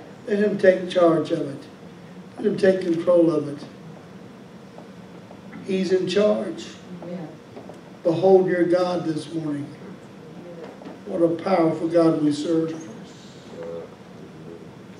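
A man speaks with animation into a microphone, heard through a loudspeaker in an echoing hall.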